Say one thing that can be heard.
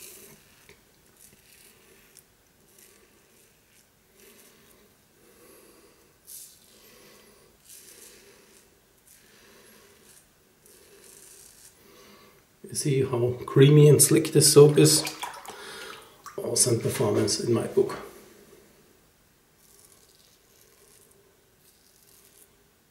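A razor scrapes softly across stubble.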